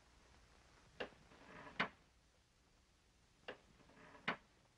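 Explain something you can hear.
Knuckles knock sharply on a wooden door.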